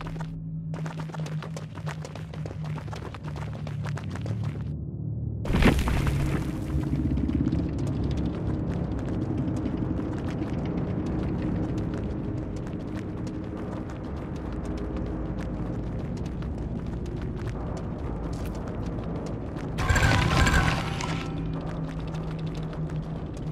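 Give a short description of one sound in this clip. Dark, droning game music plays steadily.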